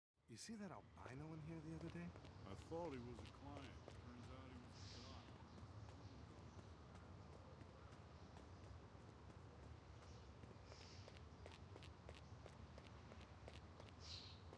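Footsteps tread steadily on grass and gravel.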